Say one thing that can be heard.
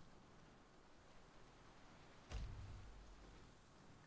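A soft interface click sounds as a menu opens.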